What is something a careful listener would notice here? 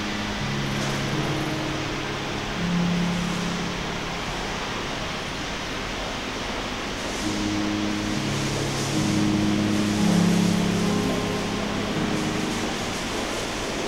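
Soft electronic tones play through loudspeakers in a large echoing hall.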